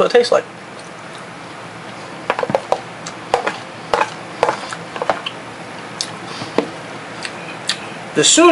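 A man chews and smacks on a mouthful of food.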